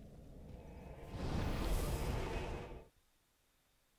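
A loud whoosh of swirling mist swells and cuts off suddenly.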